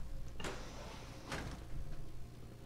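A heavy metal door slides open with a low rumble.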